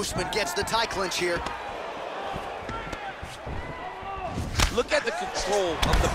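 A crowd cheers and murmurs in the background.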